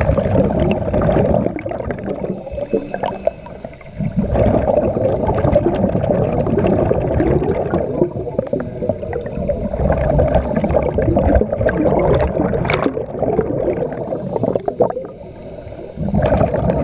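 A diver breathes through a regulator with a hiss.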